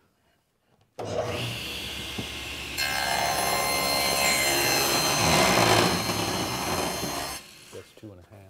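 A table saw whines as it cuts wood.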